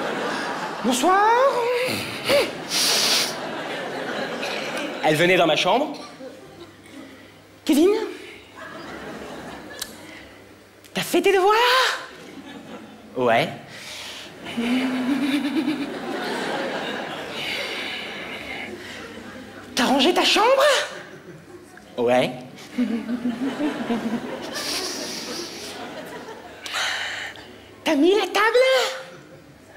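A young man talks animatedly through a microphone.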